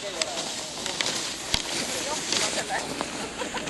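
Skis swish and scrape across snow.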